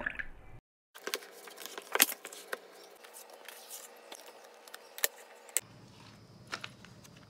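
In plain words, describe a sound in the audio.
A plastic palette clicks as hands handle it.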